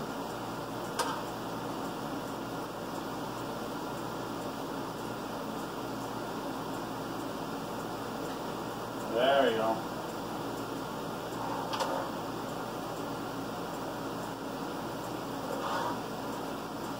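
Dishes clink now and then in a sink.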